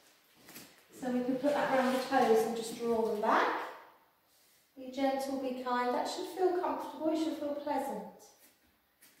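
A middle-aged woman speaks calmly and clearly, close by, giving instructions.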